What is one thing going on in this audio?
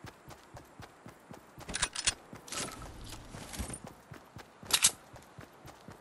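Footsteps of a running game character patter on grass.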